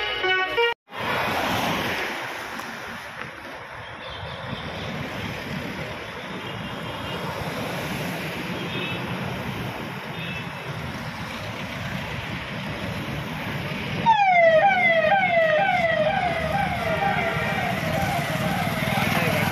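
Car engines hum as cars drive slowly past one after another.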